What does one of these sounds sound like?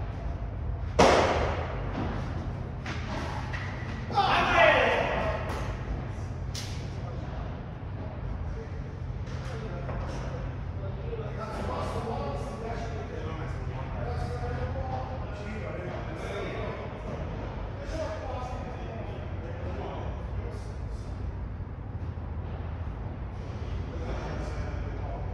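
Padel rackets strike a ball with sharp pops that echo in a large hall.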